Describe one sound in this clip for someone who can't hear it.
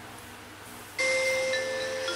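A game chime plays from a tablet's speaker.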